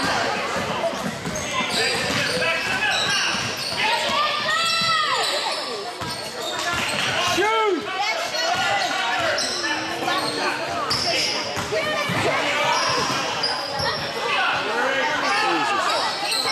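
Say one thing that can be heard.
Sneakers squeak sharply on a hardwood court in a large echoing gym.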